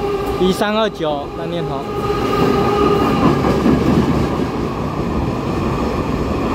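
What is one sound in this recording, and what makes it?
Heavy freight wagons rumble and clatter past on the rails.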